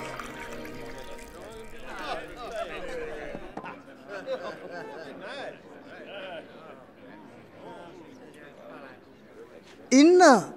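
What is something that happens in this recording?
Several men talk quietly in the background.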